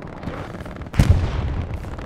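An explosion booms in the distance.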